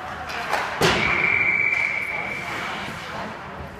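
A referee's whistle blows a steady shrill blast.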